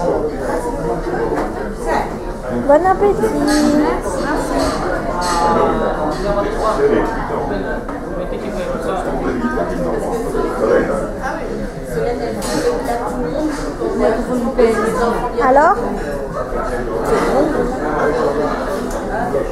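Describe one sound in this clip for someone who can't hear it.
A busy room full of voices chatters throughout.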